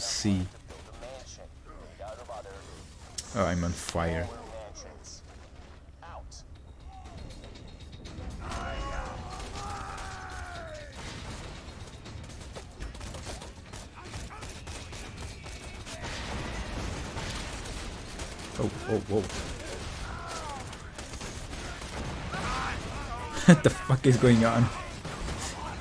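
Rifle shots crack and boom in bursts.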